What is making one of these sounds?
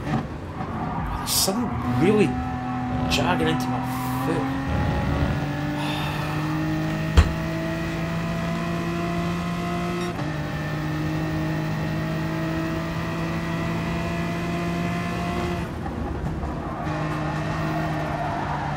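A racing car engine roars steadily at high revs, shifting up through gears.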